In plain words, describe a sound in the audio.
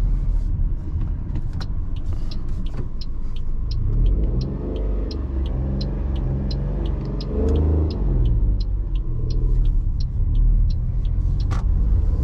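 A turn signal ticks evenly inside the car.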